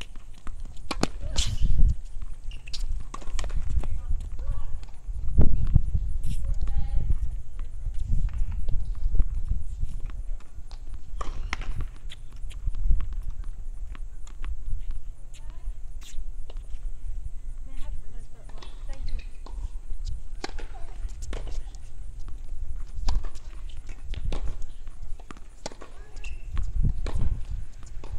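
Tennis balls are struck with sharp pops outdoors.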